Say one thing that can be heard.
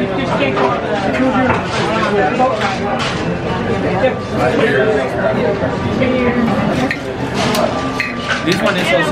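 A man and a woman talk nearby.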